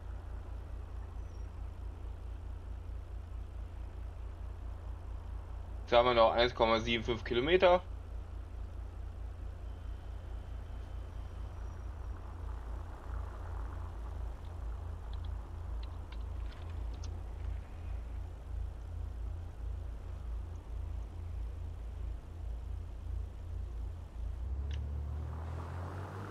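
A vehicle engine idles with a steady low rumble.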